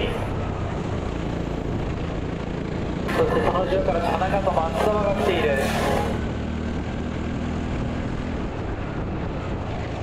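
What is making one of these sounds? A small kart engine drones steadily close by.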